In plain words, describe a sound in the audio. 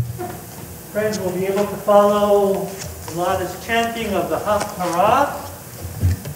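A young woman chants through a microphone in a large echoing hall.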